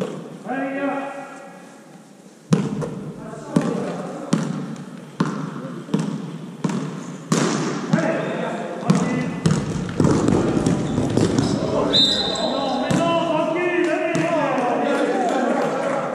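Young men call out to each other across the court.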